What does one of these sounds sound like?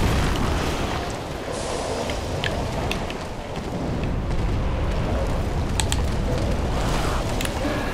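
A sword swings and whooshes through the air.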